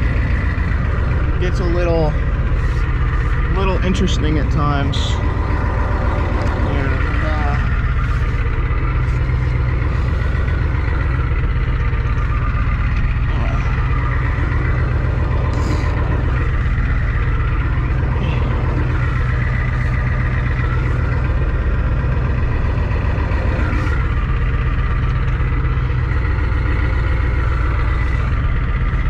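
Tyres roll along a road.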